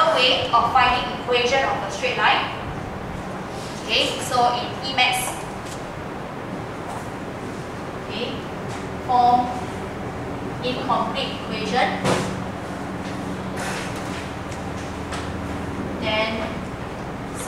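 A young woman speaks calmly through a headset microphone.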